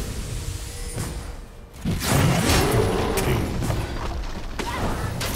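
Magic spells burst and crackle in a fight between game figures.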